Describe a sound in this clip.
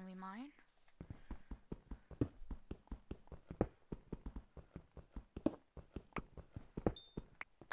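A pickaxe taps rapidly on stone blocks.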